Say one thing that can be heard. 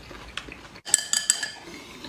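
A man gulps soup from a bowl.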